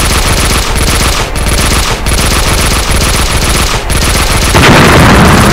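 Rapid gunfire rattles continuously.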